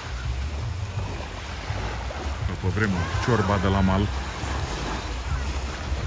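Small waves lap and wash gently onto a sandy shore.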